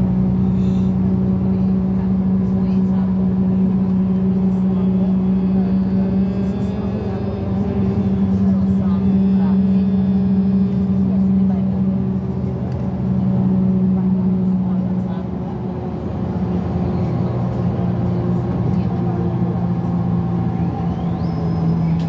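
A bus engine drones steadily from inside the bus as it drives along a road.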